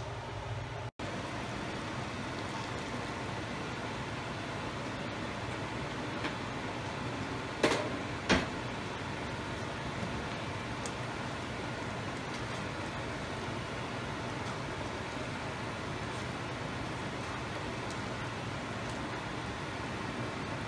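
Food simmers and bubbles in a pan.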